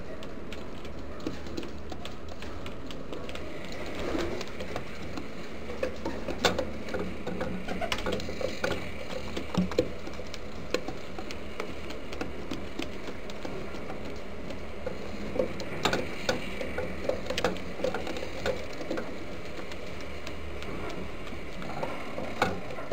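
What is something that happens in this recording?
Pigeon feet scratch and tap on a wooden floor.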